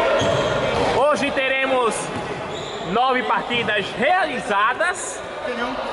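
Sneakers squeak sharply on a hard court floor in an echoing hall.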